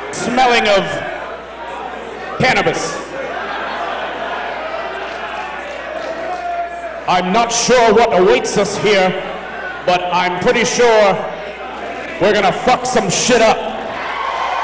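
A man announces loudly through a microphone over a loudspeaker in an echoing hall.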